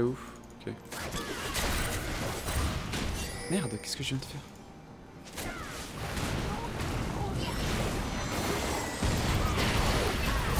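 Magic blasts, crackles and clashing hits burst out in a busy fight.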